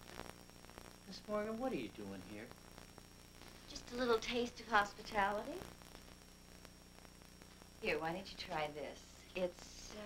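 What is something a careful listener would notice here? A woman talks calmly.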